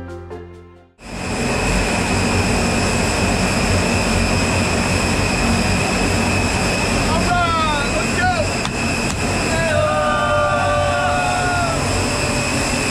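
An aircraft engine roars loudly and steadily.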